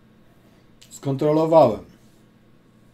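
An elderly man says a few words briefly, close to a microphone.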